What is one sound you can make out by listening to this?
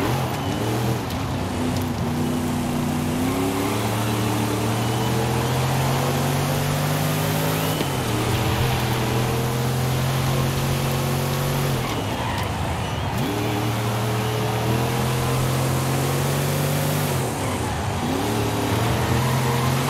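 Tyres screech as a car slides through bends.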